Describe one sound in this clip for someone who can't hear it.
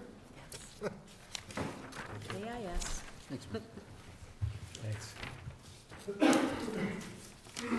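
Papers rustle.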